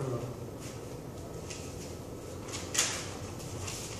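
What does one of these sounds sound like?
Paper rustles in a young man's hands.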